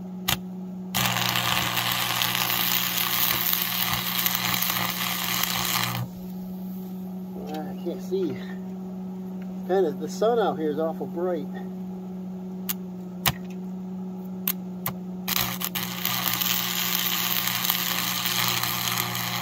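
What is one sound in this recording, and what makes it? An arc welder crackles and hisses steadily.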